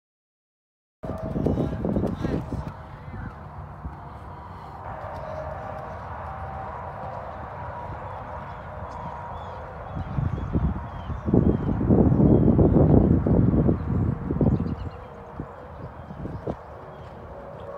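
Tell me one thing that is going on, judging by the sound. A horse's hooves thud on soft sand.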